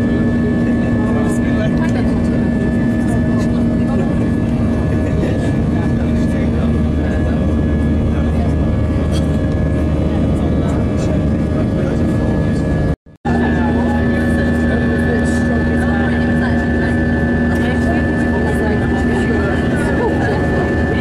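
A jet engine roars steadily, heard from inside an aircraft cabin.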